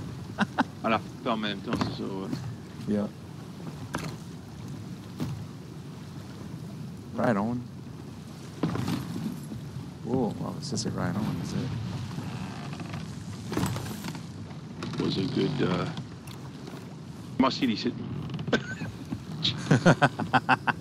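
Stormy sea waves surge and splash against a wooden ship.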